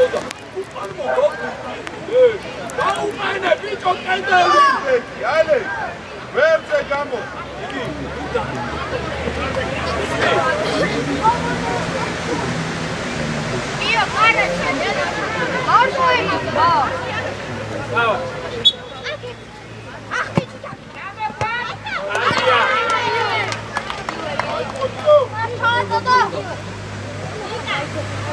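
Young players shout and call out to each other outdoors.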